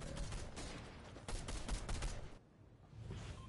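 Footsteps patter quickly over dry ground.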